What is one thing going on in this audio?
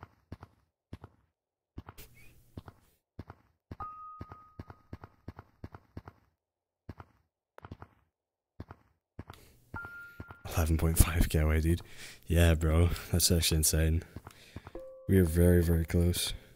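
Hands slap and grab against rock in quick, sharp taps.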